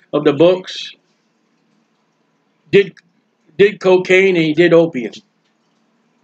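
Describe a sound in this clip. A man speaks calmly through an online call, in short bursts.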